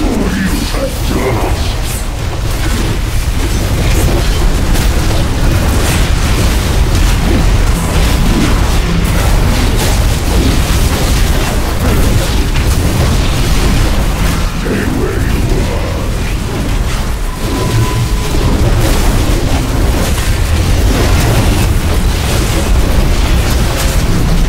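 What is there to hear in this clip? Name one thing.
Spell and weapon sound effects clash in a fantasy video game battle.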